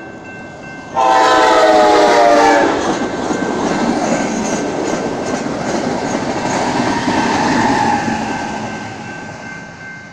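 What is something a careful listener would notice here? A passenger train rumbles and roars past close by.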